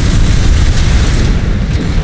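A flamethrower blasts with a deep rushing roar.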